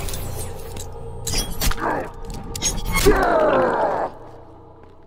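A blade stabs into flesh with a wet squelch.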